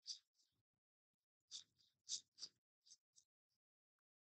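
Playing cards are shuffled by hand in short, soft riffling bursts.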